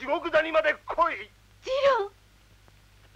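A young woman cries out pleadingly.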